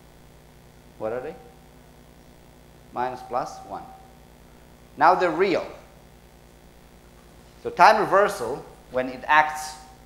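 A man speaks calmly in short phrases, close by in a slightly echoing room.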